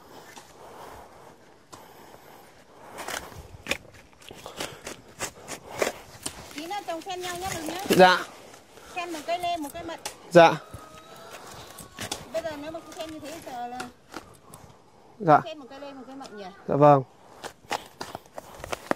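A hoe chops into dry soil with repeated dull thuds.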